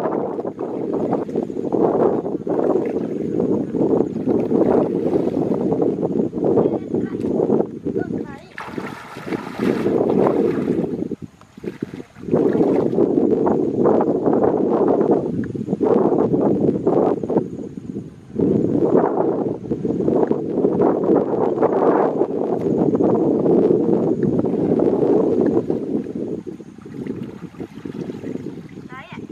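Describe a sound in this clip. Water splashes as people wade through a shallow stream.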